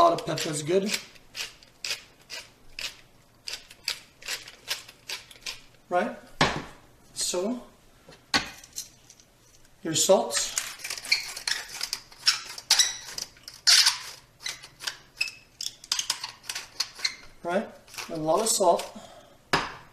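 A pepper grinder crackles as it is twisted.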